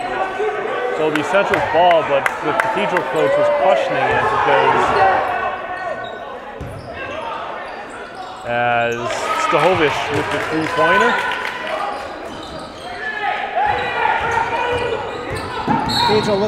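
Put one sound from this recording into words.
Spectators cheer and shout in an echoing gym.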